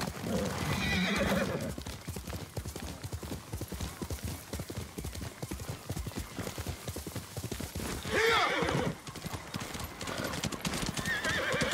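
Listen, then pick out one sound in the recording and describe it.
A horse's hooves thud rapidly at a gallop over grass and stones.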